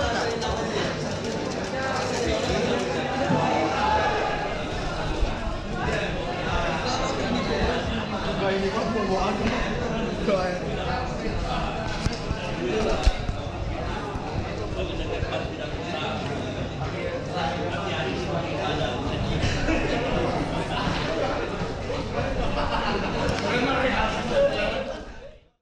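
Several young men talk and chatter nearby.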